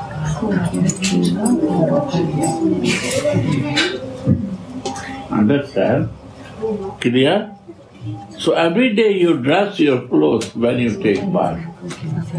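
An elderly man speaks calmly and steadily, close by.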